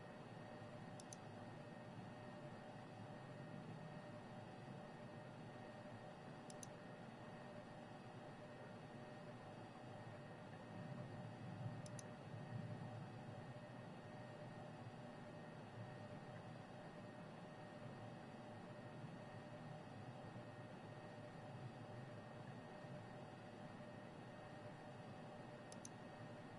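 Soft clicks sound now and then as menu pages change.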